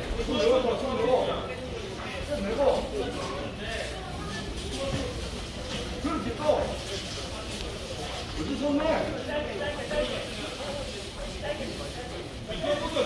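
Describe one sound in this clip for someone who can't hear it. Spectators at ringside shout and call out.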